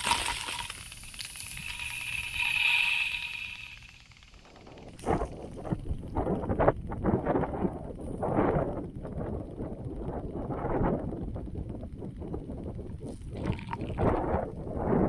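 A lawn sprinkler sprays water with a rapid hiss.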